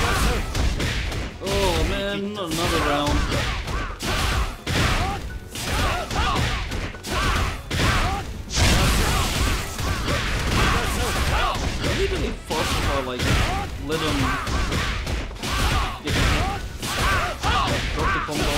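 Punches and blasts hit hard in quick succession in a fighting game.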